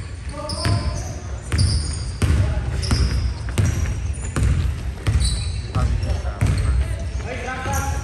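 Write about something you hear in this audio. A basketball bounces rhythmically on a wooden court in an echoing gym.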